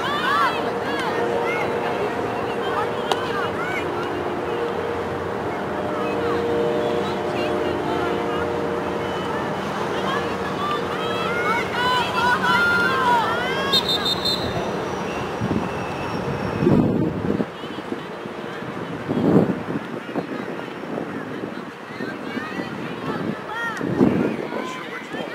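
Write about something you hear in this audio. Young women call out to each other across an outdoor field, heard from a distance.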